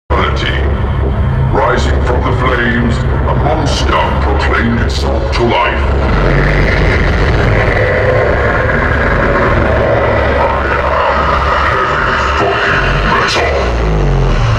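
A heavy metal band plays loudly through big loudspeakers outdoors.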